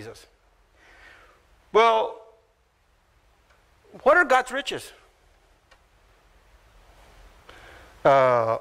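An older man speaks slowly and emphatically into a microphone, with long pauses.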